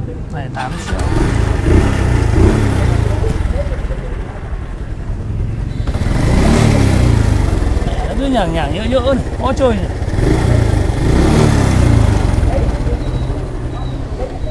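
A motorbike engine idles nearby.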